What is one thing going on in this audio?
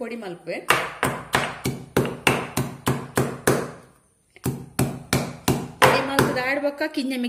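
A stone pestle pounds rhythmically in a stone mortar.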